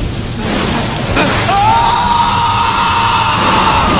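A man shouts loudly nearby.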